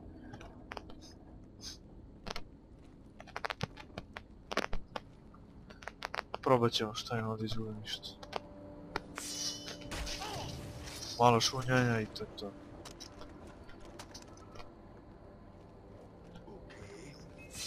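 Footsteps crunch softly on sand and stone.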